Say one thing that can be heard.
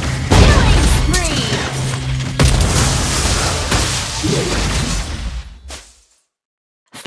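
Magical blasts and clashing battle effects ring out in a video game.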